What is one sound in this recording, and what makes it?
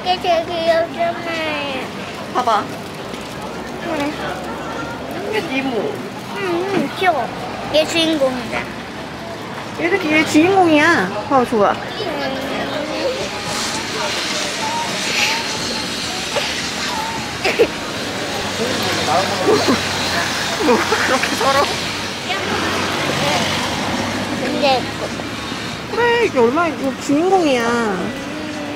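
A young girl speaks softly.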